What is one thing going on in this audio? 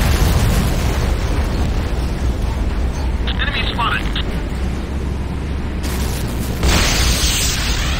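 Electricity crackles and fizzes steadily.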